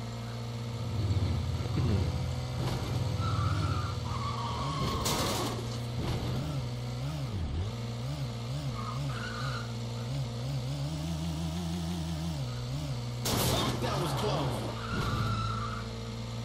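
A car engine hums steadily and revs up and down.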